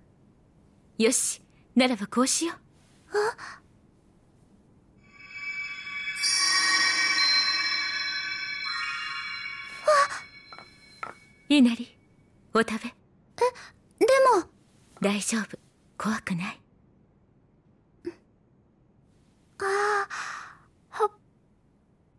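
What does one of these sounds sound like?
A young woman speaks calmly and warmly.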